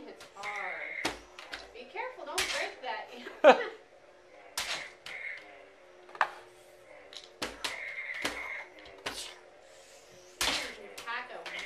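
A young child squeals and babbles excitedly nearby.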